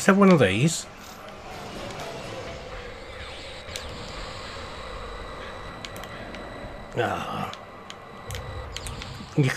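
A laser beam hums and crackles steadily in a video game.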